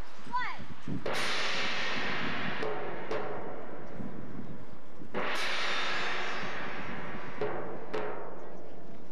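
A marching band's percussion strikes loud accented hits.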